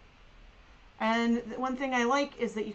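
A woman speaks calmly close to a microphone.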